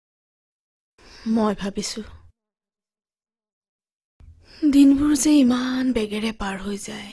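A woman speaks softly, close by.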